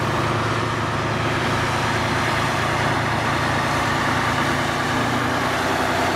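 A diesel locomotive rumbles steadily as it pulls a train past.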